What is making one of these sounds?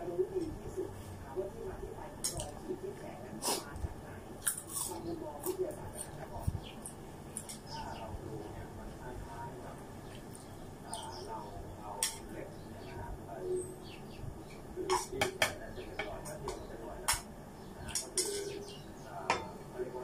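A middle-aged woman chews and smacks her lips close by.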